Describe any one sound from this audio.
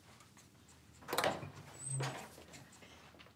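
A young woman coos softly to a baby.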